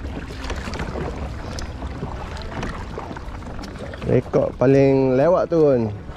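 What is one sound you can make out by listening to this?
A paddle splashes through water in steady strokes.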